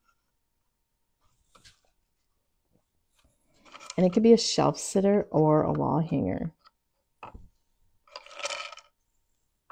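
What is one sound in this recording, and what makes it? Cardboard pieces rustle and tap as they are handled.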